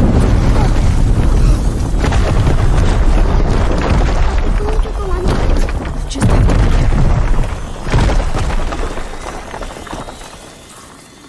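A fire roars loudly with a deep rumble.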